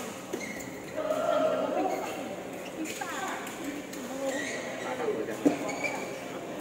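Young men call out to each other across the hall.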